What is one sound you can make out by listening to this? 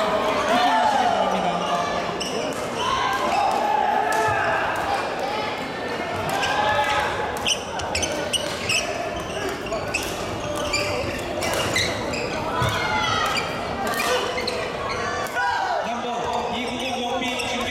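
Many voices of young people chatter and call out through a large echoing hall.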